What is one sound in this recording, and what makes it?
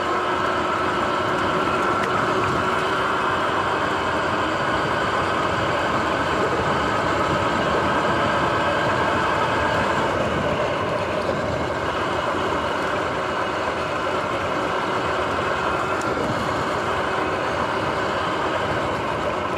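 An electric bike motor whines steadily as it rides along.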